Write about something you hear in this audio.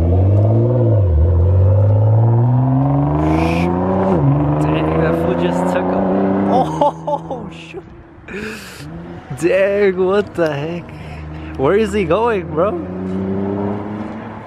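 A sports car engine revs hard, climbing in pitch through several gear changes and then fading into the distance.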